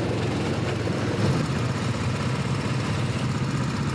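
A go-kart engine buzzes loudly close by.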